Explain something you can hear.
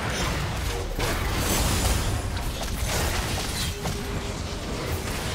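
Fantasy battle sound effects whoosh, zap and crackle in quick succession.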